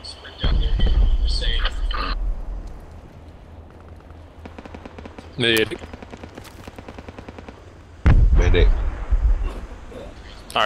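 A rifle fires with a loud, deep boom that rolls away.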